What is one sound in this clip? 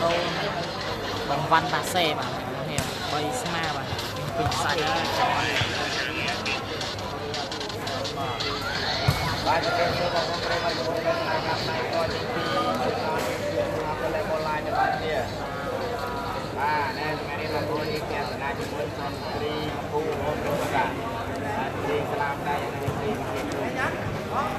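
A large crowd chatters and shouts, echoing in a big hall.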